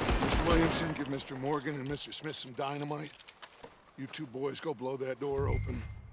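A man speaks firmly, giving orders.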